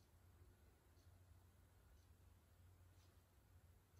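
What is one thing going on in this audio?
A metal face roller rolls over skin with faint soft clicks.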